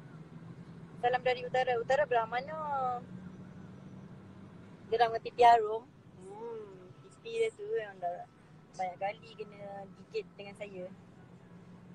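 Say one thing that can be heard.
A young woman talks calmly close to a phone microphone.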